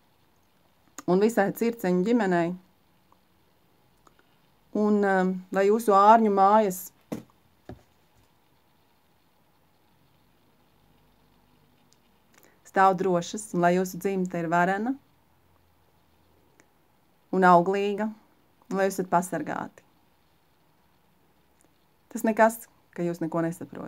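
A middle-aged woman speaks calmly close to the microphone, pausing between phrases.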